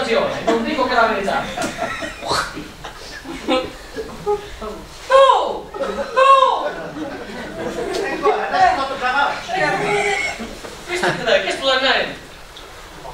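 A man speaks loudly and with animation, heard from a distance in an echoing hall.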